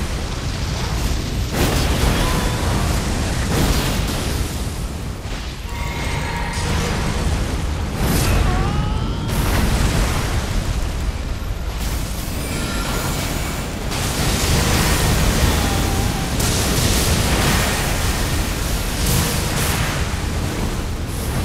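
A sword clashes and slashes in heavy, repeated hits.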